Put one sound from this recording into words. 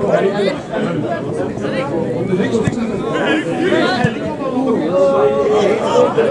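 Men talk and call out loudly close by.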